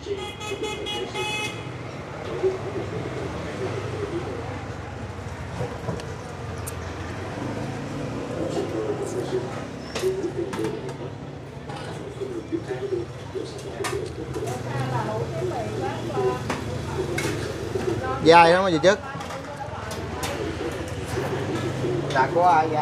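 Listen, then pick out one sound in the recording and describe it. A woman slurps noodles loudly.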